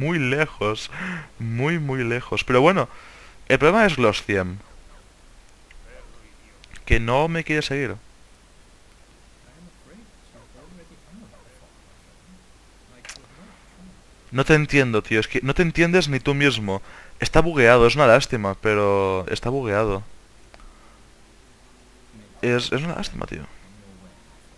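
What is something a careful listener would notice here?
A man speaks calmly, close and clear.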